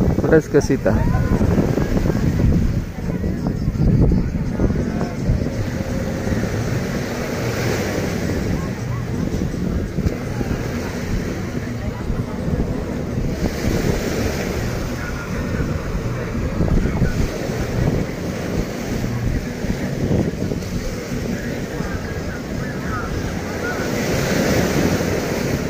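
Wind blows across an open beach.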